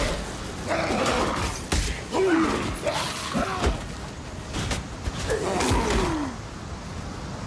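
Monsters shriek and growl as they are struck.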